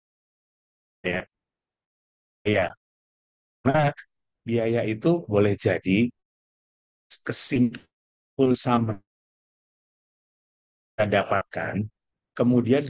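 A man speaks calmly over an online call, in short phrases with pauses between them.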